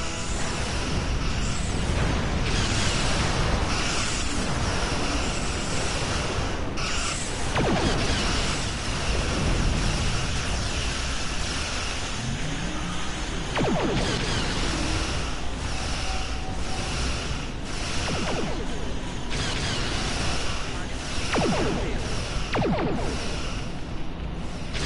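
A deep engine rumble drones steadily.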